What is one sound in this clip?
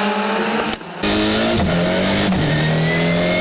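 A racing car engine revs hard up close, dropping in pitch with each gear change.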